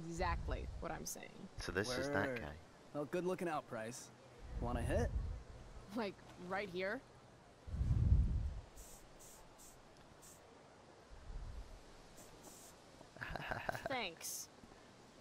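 A young woman speaks flatly and quietly.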